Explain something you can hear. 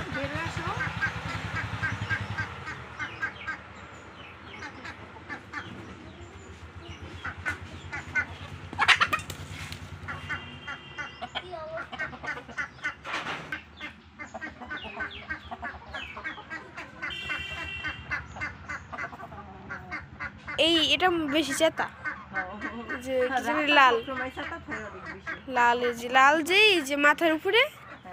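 Chickens cluck and cackle close by.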